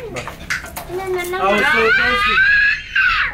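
A young child shouts excitedly.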